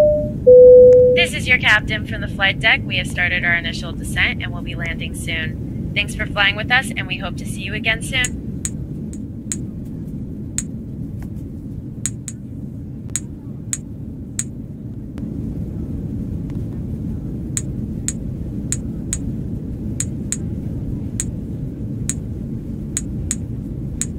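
A plane's engines drone steadily in the cabin.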